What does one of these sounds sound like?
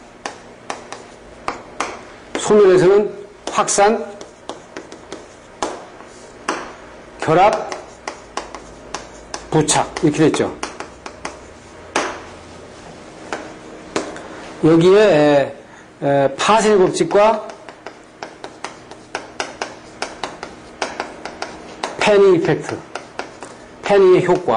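Chalk taps and scratches on a blackboard in quick strokes.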